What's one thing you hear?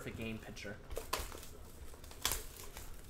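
Plastic wrap crinkles as a box is handled.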